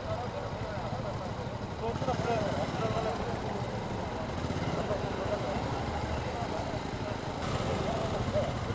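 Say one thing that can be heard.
Men talk to each other nearby outdoors.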